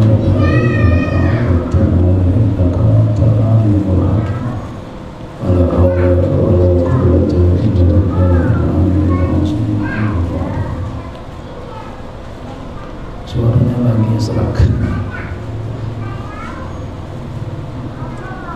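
A middle-aged man speaks calmly into a microphone, heard through a loudspeaker.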